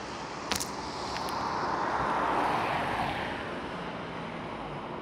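A van drives past with a swelling hiss of tyres on a wet road.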